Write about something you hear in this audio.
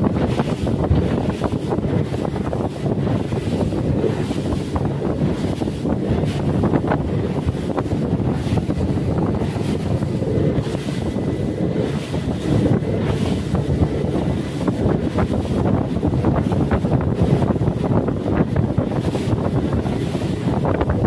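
Wind blusters steadily across open water.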